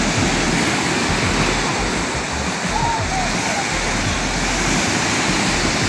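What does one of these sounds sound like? Several men shout out over the surf.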